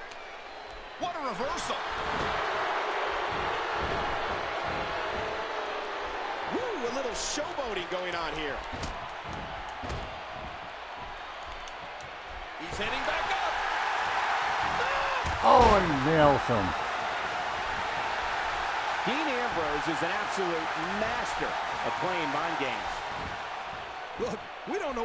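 A large crowd roars and cheers in an arena.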